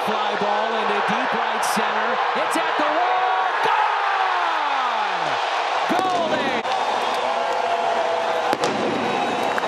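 A large crowd in a stadium roars and cheers.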